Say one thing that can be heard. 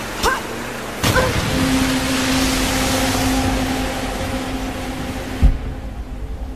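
A waterfall rushes and splashes nearby.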